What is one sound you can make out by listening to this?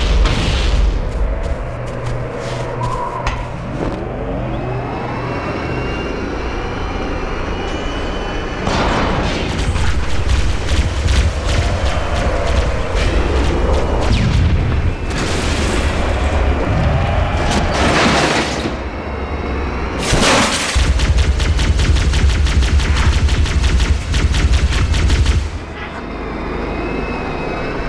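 A man talks through a headset microphone.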